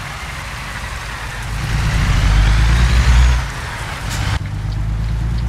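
Rain hisses steadily.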